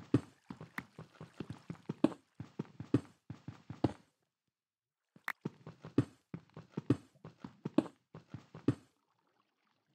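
A pickaxe repeatedly chips and breaks through dirt blocks with quick scraping knocks.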